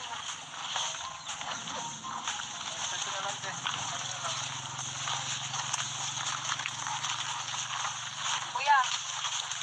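A crowd of men and women talk and shout outdoors.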